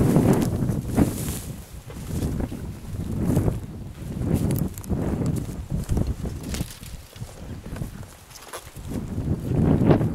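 Dry branches scrape and rustle against clothing.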